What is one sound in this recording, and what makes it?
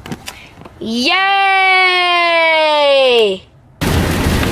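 A young boy sings out a long, loud note up close that slowly drops in pitch.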